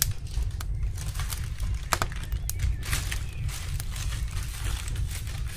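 Baking paper crinkles and rustles.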